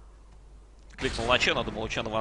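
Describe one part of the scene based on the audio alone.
A magical spell bursts with a bright whoosh.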